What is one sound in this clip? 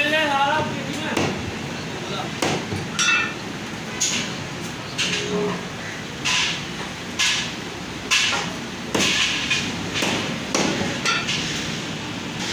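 A cleaver chops through meat and bone onto a wooden block with sharp, repeated thuds.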